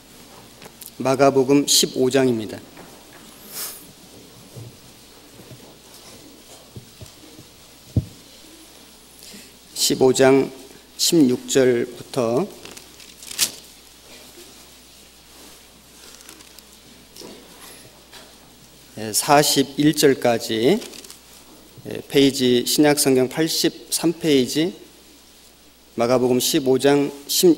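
A man reads aloud slowly into a microphone, in short phrases with pauses.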